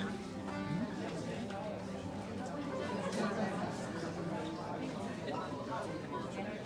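A man sings loudly while playing an accordion.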